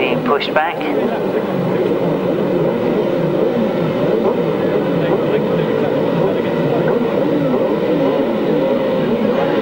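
Motorbike engines drone on steadily in the distance.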